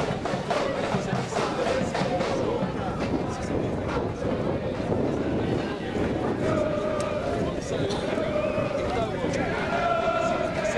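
Men shout and call out across an open outdoor field.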